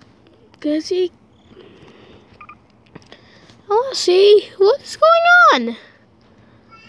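A boy speaks excitedly into a nearby microphone, his voice rising and falling.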